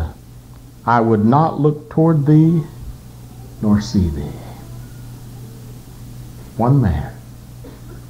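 A man speaks loudly and with animation through a microphone, in short bursts.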